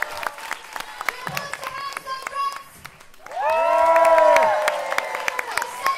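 An audience claps hands.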